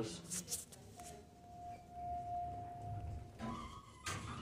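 An elevator chime rings with a steady tone on arrival.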